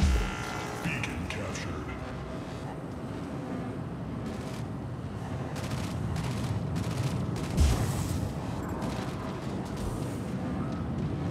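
Heavy metallic footsteps of a large robot thud steadily.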